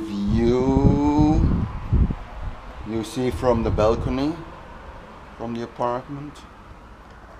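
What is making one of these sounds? A man talks with animation close to the microphone.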